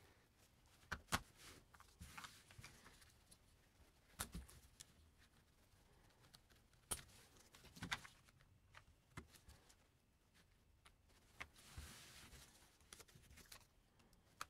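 Plastic track pieces click and clatter as they are snapped together.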